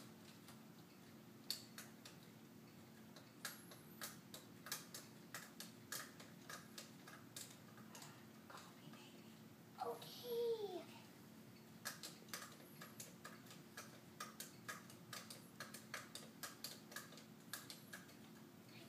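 A toy guitar's plastic strings and buttons click rapidly.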